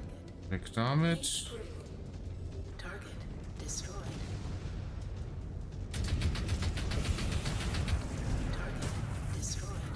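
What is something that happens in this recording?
Explosions rumble and boom.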